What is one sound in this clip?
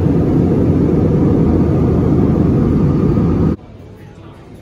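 A jet engine roars steadily inside an airliner cabin.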